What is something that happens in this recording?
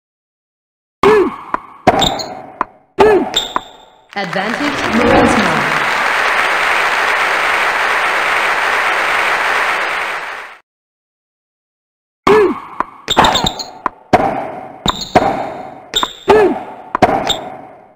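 Tennis balls are struck sharply with rackets and bounce.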